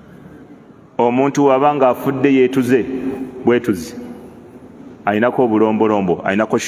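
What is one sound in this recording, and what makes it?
A man speaks calmly into a handheld microphone, close by.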